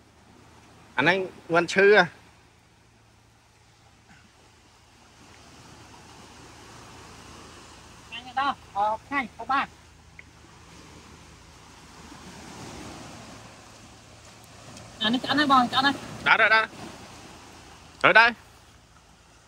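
A young man talks close by in short bursts.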